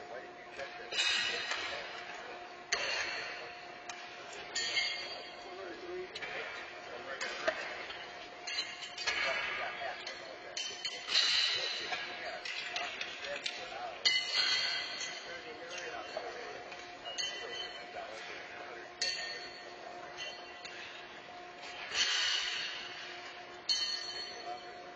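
Pitched horseshoes clang against steel stakes, echoing in a large hall.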